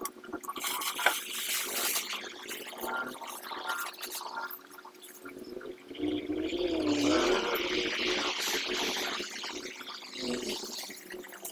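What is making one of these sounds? A plastic tarp rustles and crinkles as it is dragged over sand.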